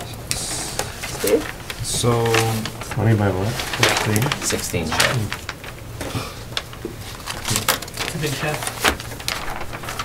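Papers rustle and flap as they are handled.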